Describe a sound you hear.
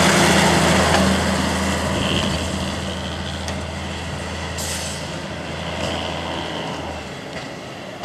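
A diesel railcar's engine rumbles as the railcar pulls away and fades into the distance.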